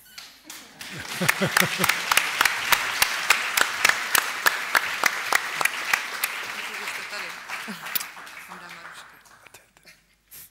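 An audience claps and applauds loudly in a large hall, then the applause fades.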